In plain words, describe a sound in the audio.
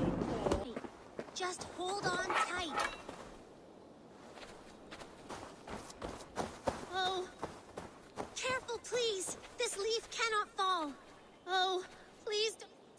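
A young child calls out anxiously in a high voice.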